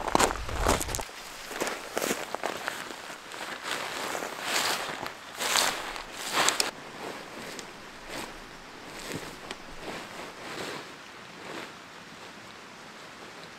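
Nylon tent fabric rustles and crinkles as it is handled.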